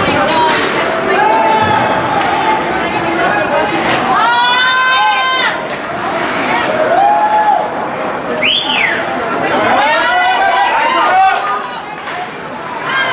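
Spectators shout and cheer in a large echoing rink.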